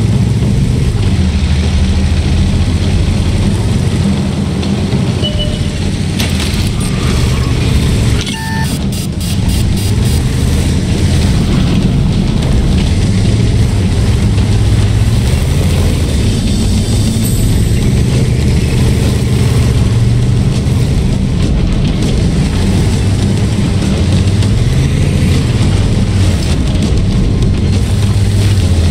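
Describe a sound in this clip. A tank engine rumbles low and steady.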